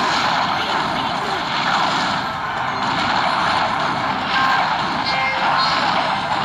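Cartoonish battle sound effects clash and pop.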